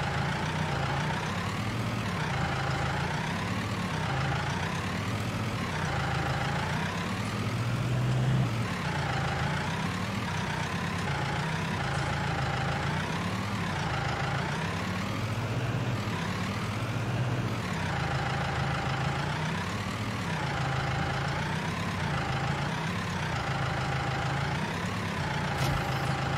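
A tractor engine runs, its pitch rising and falling over and over.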